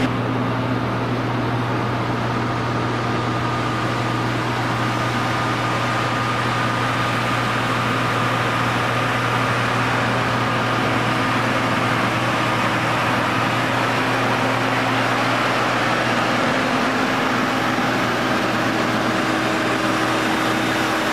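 A ground power unit's engine hums steadily nearby.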